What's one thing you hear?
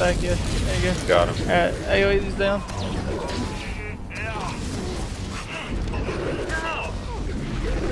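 Electric bolts crackle and buzz.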